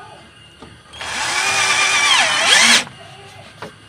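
A cordless drill whirs, screwing into a frame.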